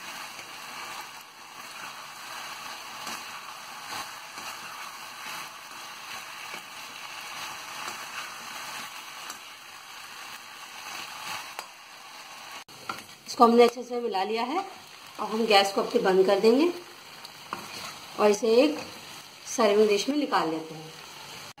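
A metal spatula scrapes and clatters against a pan.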